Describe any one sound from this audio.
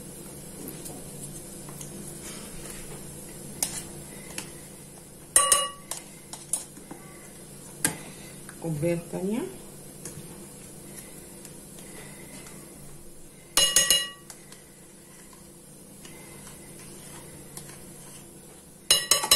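A plastic tub knocks and clatters against a bowl.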